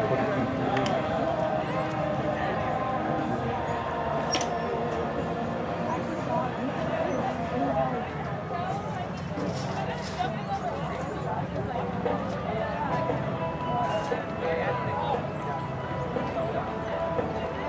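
A horse's hooves thud on grass at a canter.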